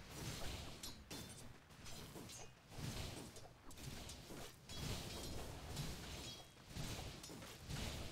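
Fantasy game combat effects whoosh and clash.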